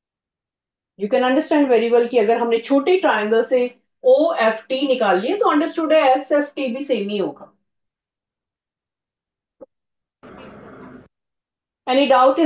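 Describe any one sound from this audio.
A woman speaks calmly and clearly through a microphone, as if teaching.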